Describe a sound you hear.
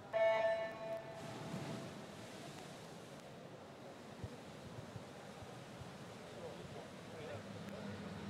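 Swimmers dive in and splash through the water.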